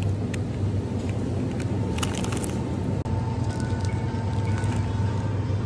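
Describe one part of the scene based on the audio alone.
Plastic packaging crinkles in a hand.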